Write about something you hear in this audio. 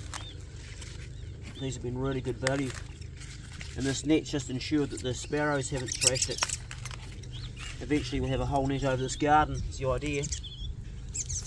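Leaves snap as they are picked by hand.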